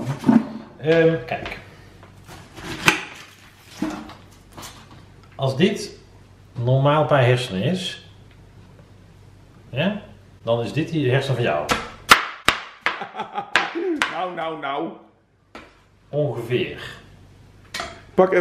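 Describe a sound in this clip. A knife chops through cauliflower onto a cutting board.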